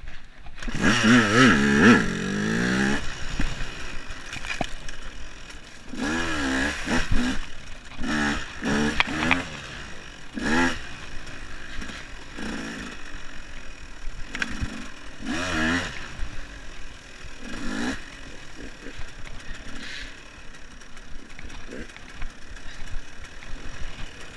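An enduro motorcycle revs hard in bursts as it rides along a dirt trail.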